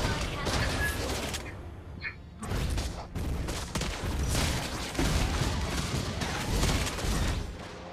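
A young man speaks with animation into a microphone.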